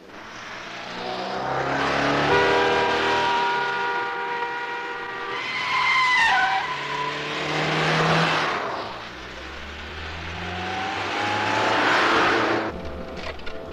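Several car engines roar as cars speed past one after another.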